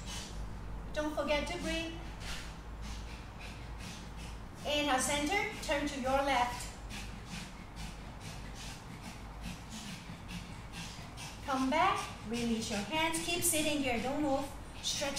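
A young woman speaks calmly and clearly close by, pausing between phrases.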